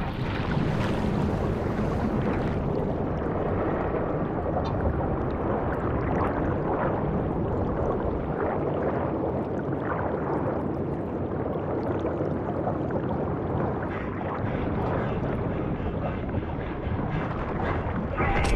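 Bubbles gurgle and rise through deep water.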